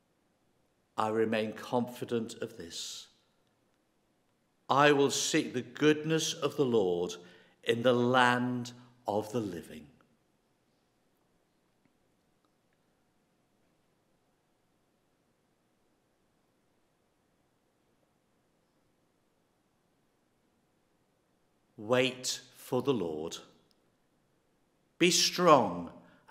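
An elderly man reads aloud calmly into a microphone, with pauses.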